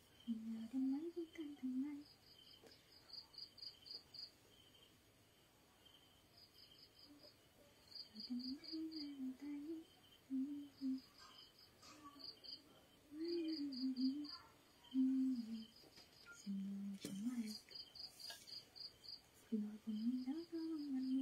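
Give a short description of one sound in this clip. A young woman sings softly close by.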